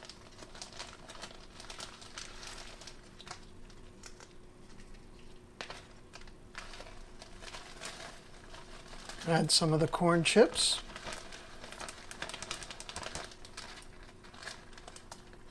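A plastic bag crinkles and rustles in someone's hands.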